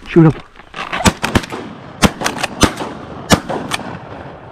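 Shotgun blasts ring out.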